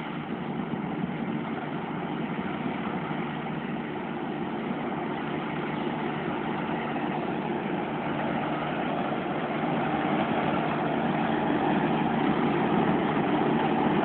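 A combine harvester engine drones steadily and grows louder as it approaches.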